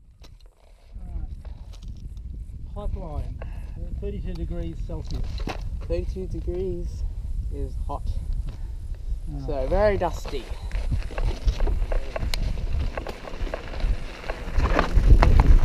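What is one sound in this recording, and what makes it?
Wind rumbles against a microphone while riding outdoors.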